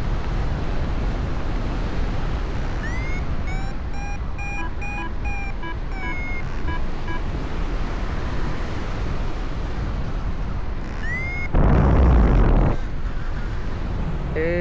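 Wind rushes steadily past, with a brief louder gust.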